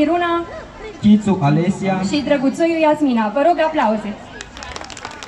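A teenage boy speaks animatedly through a loudspeaker outdoors.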